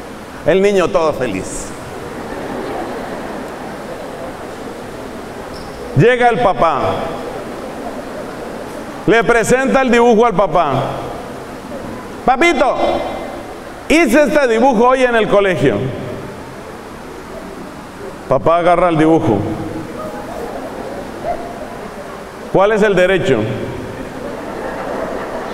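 A middle-aged man preaches with animation through a microphone, in short bursts with pauses, in a reverberant hall.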